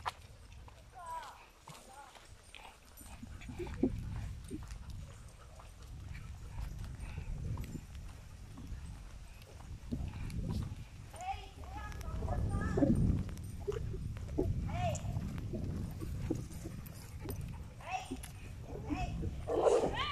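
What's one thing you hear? Dogs whine and yelp.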